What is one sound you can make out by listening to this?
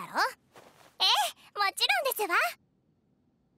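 A young girl answers brightly.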